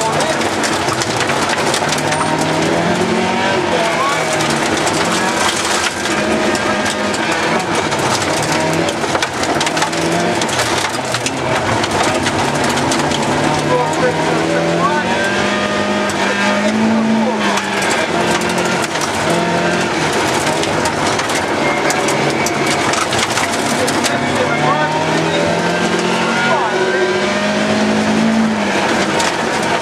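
A rally car engine roars loudly, revving up and down through the gears.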